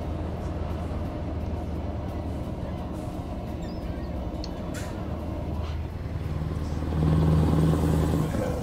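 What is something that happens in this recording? A truck engine hums steadily, growing louder near the end.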